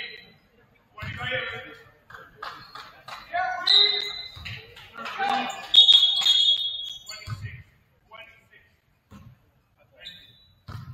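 A basketball bounces on a wooden court with hollow thumps.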